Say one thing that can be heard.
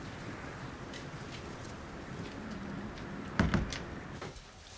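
A wooden door shuts.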